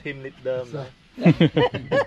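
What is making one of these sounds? Men chat casually nearby.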